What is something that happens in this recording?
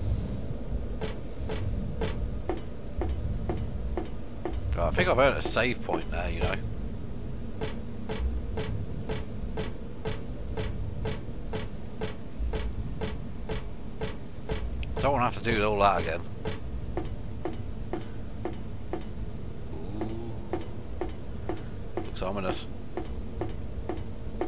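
Footsteps tap on hard ground at a walking pace.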